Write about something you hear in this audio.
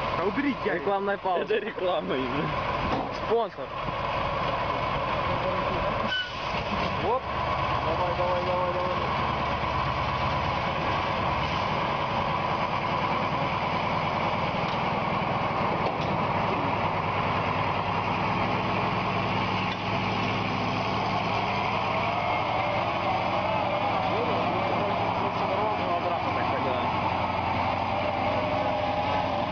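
A truck engine labours and revs.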